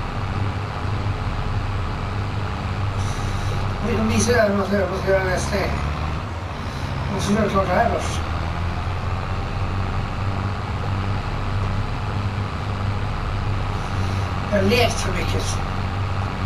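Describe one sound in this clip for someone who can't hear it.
A tractor engine rumbles steadily at a low idle.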